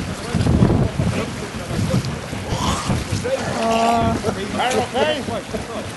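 Water splashes as people swim in survival suits.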